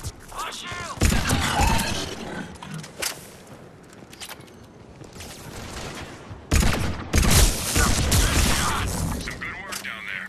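Video game gunfire and impacts crack in bursts.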